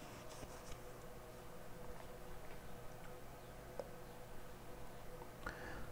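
Playing cards slide and slap softly onto a hard surface.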